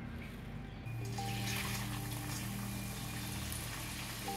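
Dry lentils rattle as they are poured into a metal pan.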